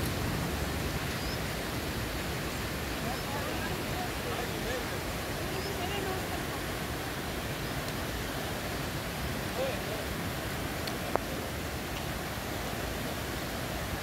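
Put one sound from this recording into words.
Water rushes steadily nearby.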